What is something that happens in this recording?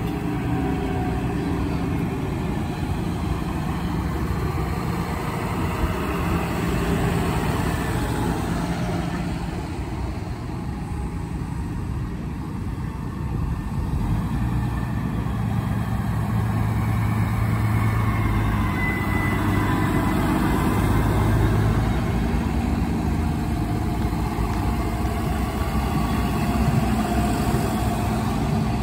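Tractor engines rumble loudly as they drive past close by, one after another.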